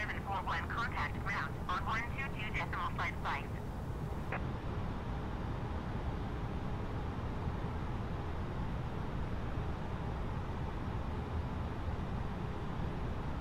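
Jet engines hum with a steady low rumble.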